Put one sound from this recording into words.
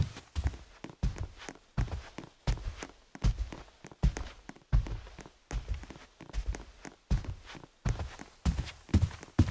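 Heavy footsteps thud at a steady walking pace.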